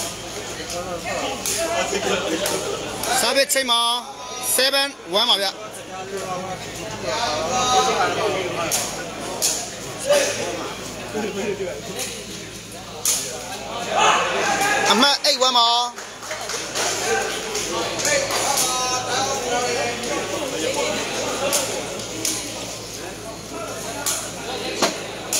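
A large crowd of spectators chatters and cheers.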